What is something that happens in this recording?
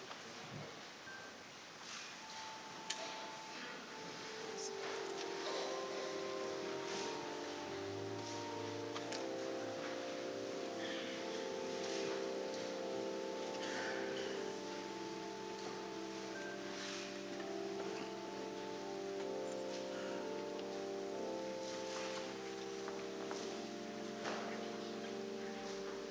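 Footsteps pad softly along a carpeted aisle in a large echoing hall.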